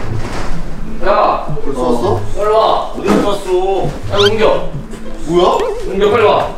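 Young men talk loudly with animation across a room.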